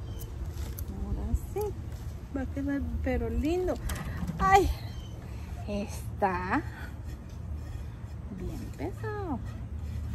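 A woman talks calmly close by.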